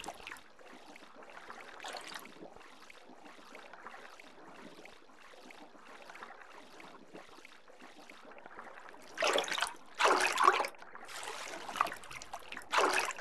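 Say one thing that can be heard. Muffled underwater rushing goes on throughout.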